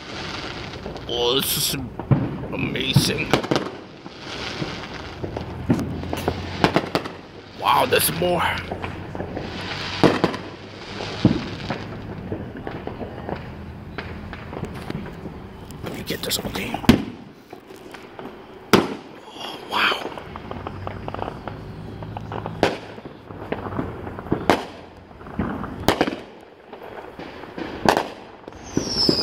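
Fireworks bang and crackle in the distance outdoors.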